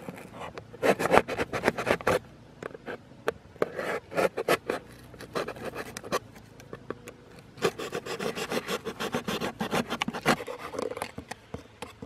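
A blade scrapes and crunches through cardboard.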